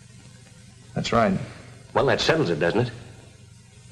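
A second man answers briefly in a low voice.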